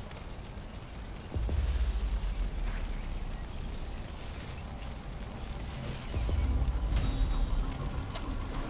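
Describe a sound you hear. Footsteps rustle through dense brush.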